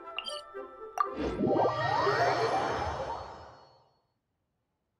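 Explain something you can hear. A game teleport whooshes with a shimmering sweep.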